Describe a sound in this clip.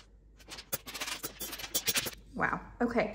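Coins clink and jingle against each other.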